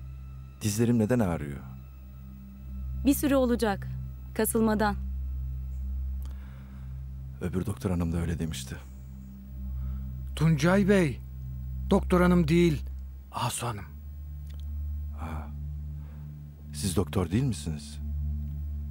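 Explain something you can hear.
A middle-aged man speaks weakly and close by.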